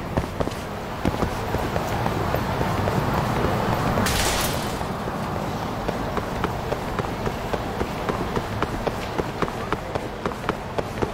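Quick footsteps slap on pavement as a man runs.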